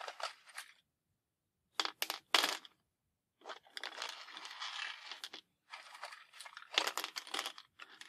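Wooden matchsticks click and rattle as they are laid against each other on a hard surface.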